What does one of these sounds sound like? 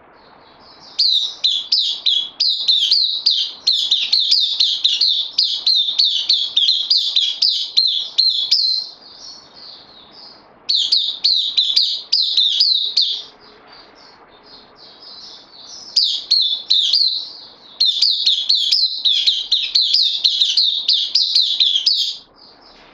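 A small bird sings loud, rapid, high chirping trills in bursts, close by.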